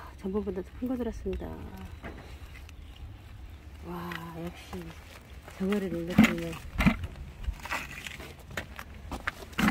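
A wire and mesh fish trap rattles and scrapes on concrete.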